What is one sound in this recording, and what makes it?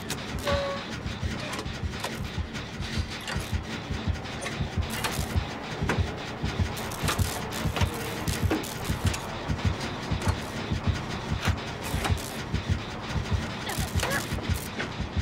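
A generator engine rattles and clanks steadily.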